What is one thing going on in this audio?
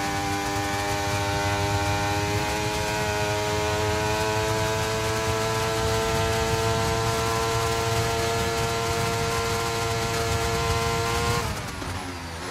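A racing car engine screams at high revs, rising slowly in pitch.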